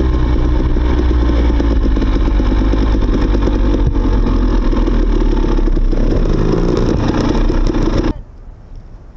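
A dirt bike engine roars close by.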